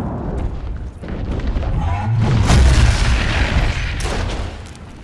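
A dragon breathes a roaring burst of fire.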